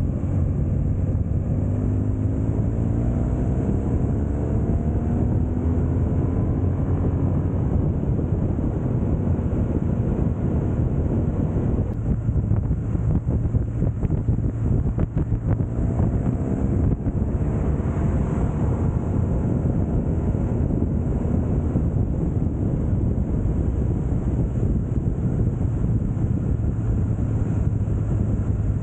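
Wind rushes loudly past a rider.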